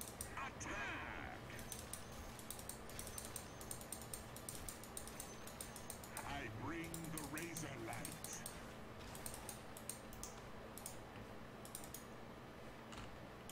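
Game battle sounds clash and crackle with quick sharp clicks.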